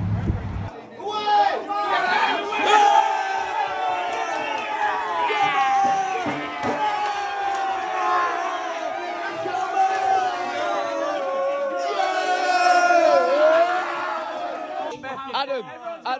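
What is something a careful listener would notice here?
A crowd of young men cheers and sings loudly.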